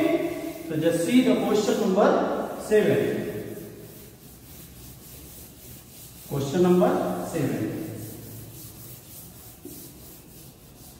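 A cloth rubs across a chalkboard.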